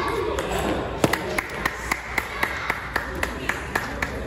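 A table tennis ball bounces repeatedly on a table in a quick, even rhythm.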